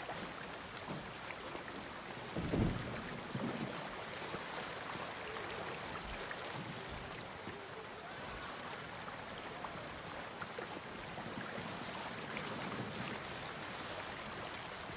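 Footsteps rustle softly through grass and over stones.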